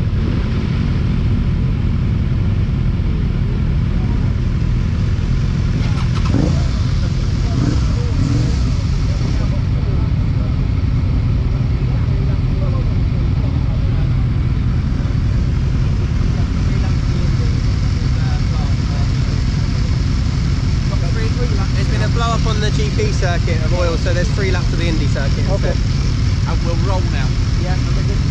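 A motorcycle engine idles with a steady low rumble close by.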